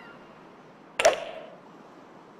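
A golf club strikes a ball with a sharp whack.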